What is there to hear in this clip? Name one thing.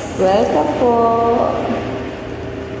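A woman sings a held note close to a microphone.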